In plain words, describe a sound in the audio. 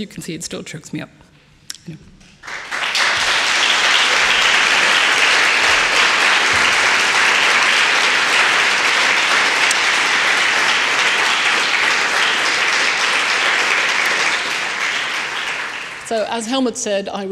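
A woman speaks into a microphone in a large echoing hall.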